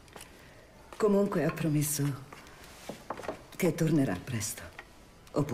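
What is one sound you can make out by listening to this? A woman speaks softly and warmly, close by.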